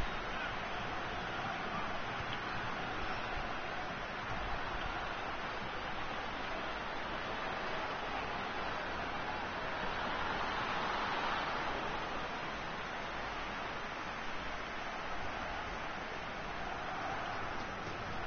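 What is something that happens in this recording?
A stadium crowd roars in a football video game.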